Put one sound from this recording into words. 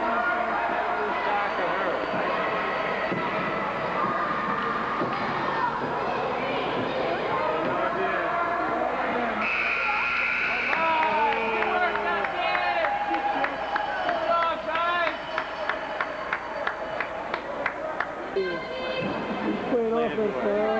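A crowd of spectators chatters nearby in a large echoing rink.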